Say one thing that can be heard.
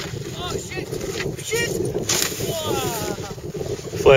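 A snowboarder thumps down into the snow.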